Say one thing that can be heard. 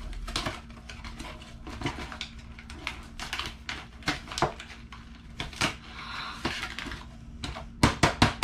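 Paper and plastic wrapping crinkle and rustle as a package is opened.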